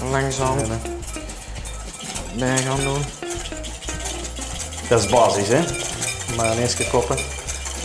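A whisk clinks against a bowl.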